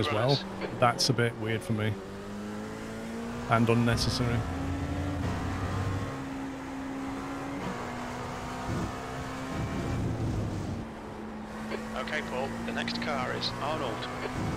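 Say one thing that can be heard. A racing car engine roars and shifts through gears.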